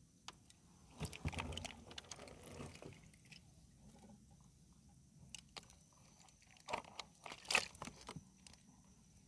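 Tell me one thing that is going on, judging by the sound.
A wire mesh trap rattles and scrapes as hands handle it.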